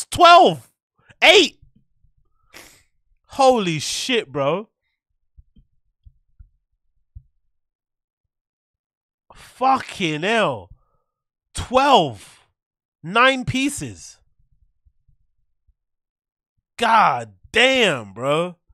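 A young man talks with animation into a close microphone, in short bursts with pauses.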